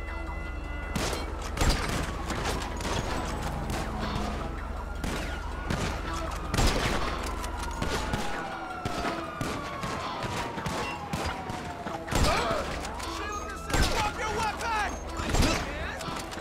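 A rifle fires sharp, loud shots now and then.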